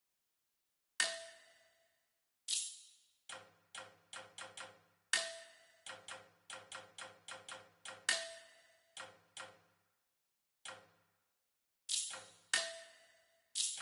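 Short chiming menu clicks sound as options are selected, one after another.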